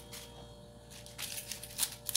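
A knife cuts through leaves.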